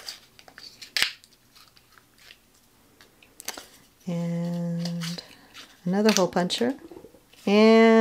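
A paper punch clicks sharply.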